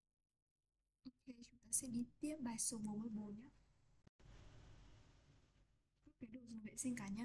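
A young woman speaks close to a microphone.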